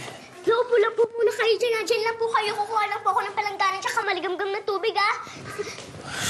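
A young girl wails loudly close by.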